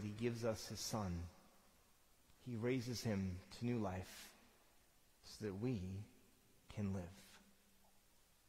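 A man speaks slowly through a microphone in a large echoing hall.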